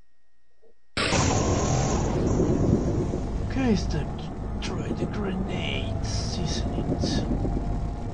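Loud roaring and whooshing effects of a video game battle play.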